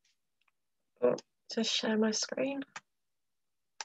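A woman speaks briefly and warmly over an online call.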